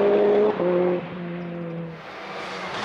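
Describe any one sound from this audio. A car engine fades into the distance.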